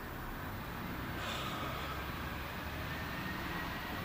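A man hums in a low, drawn-out voice.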